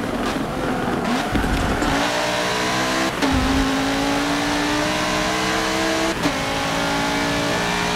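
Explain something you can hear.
A racing car engine revs hard, rising in pitch and dropping briefly at each gear change.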